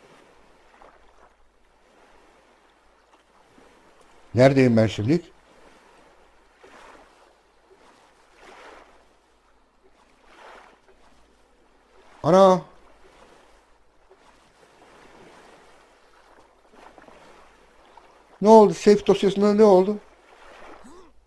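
A paddle splashes softly in water in slow strokes.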